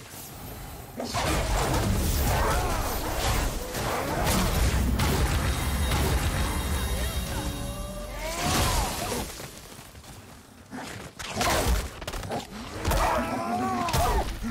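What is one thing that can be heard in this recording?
Heavy blows thud and crash in a close fight.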